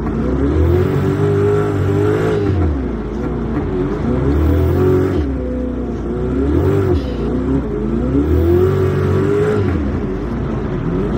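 A car engine roars and revs up and down as it shifts gears.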